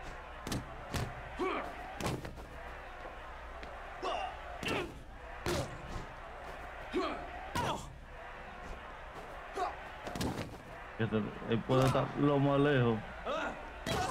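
Heavy punches thud against a body again and again.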